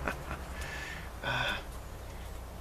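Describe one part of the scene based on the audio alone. A middle-aged man chuckles softly.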